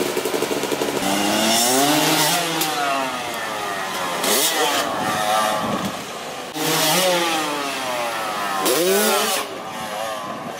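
A motorbike engine revs loudly, rising and falling in pitch.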